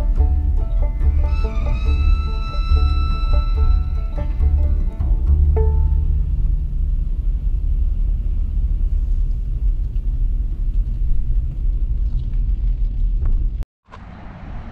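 A car engine hums low and steady.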